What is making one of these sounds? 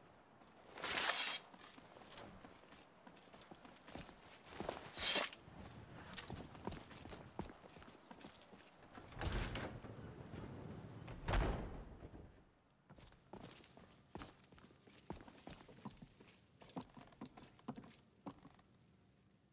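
Footsteps crunch over stone and gravel.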